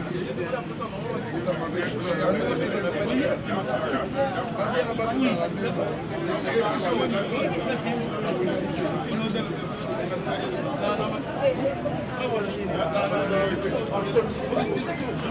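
A crowd of men and women talk over one another, nearby and outdoors.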